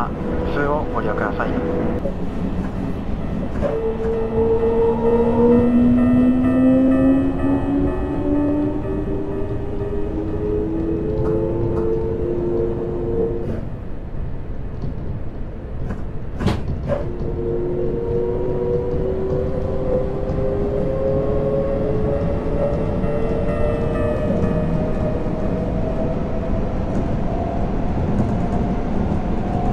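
An electric train motor whines, rising and falling in pitch.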